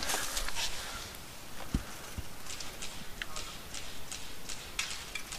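Gear rustles and scrapes against wooden logs up close.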